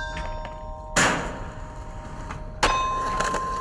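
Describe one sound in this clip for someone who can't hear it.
A skateboard slaps down on hard ground.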